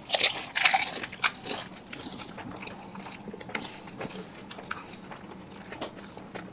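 Wet chewing and slurping of food sounds loud and close.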